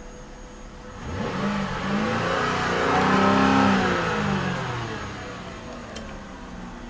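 A car engine revs up and then settles back down.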